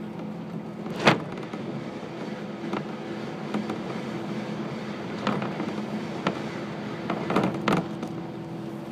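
Another train rushes past close by with a loud whoosh.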